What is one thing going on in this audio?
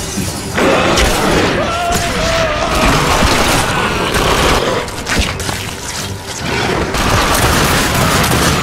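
A gunshot fires with a sharp bang.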